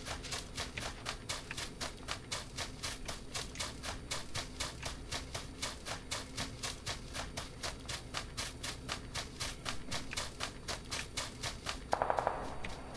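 Quick footsteps swish through tall grass.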